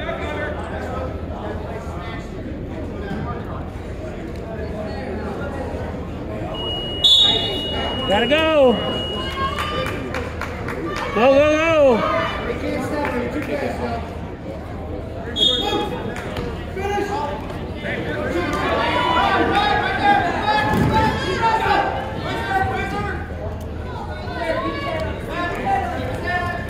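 A crowd chatters and calls out in a large echoing gym.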